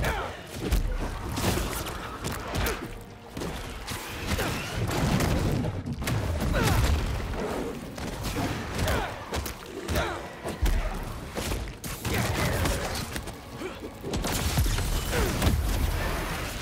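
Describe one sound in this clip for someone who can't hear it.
Blows and explosions boom and crash in a fierce fight.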